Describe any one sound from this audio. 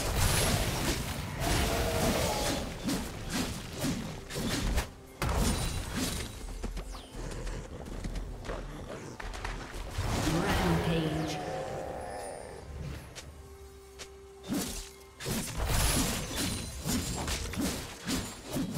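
Magic spells whoosh and crackle in a fantasy battle game.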